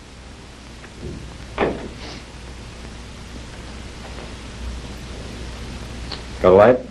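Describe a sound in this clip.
A second man answers calmly.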